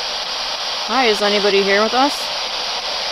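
A handheld device gives a short warbling electronic tone.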